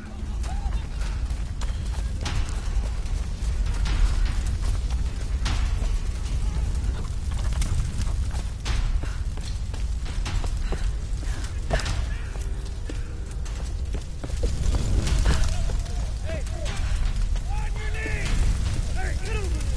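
Footsteps thud on wooden and stone steps.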